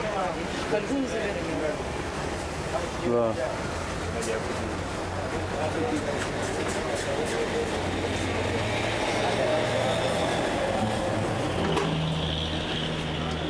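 Traffic passes along a street outdoors.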